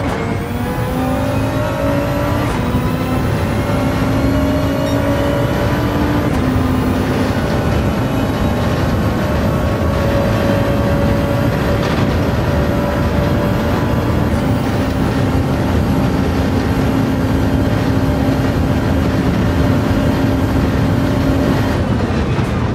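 A racing car engine roars, rising in pitch through each gear and dropping at each gear change.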